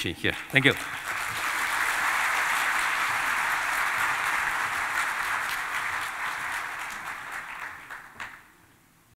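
A large audience applauds steadily, then the applause fades.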